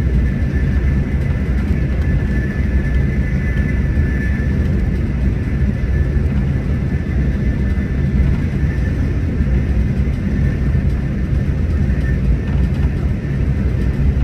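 A vehicle's engine and tyres rumble steadily at speed on a road.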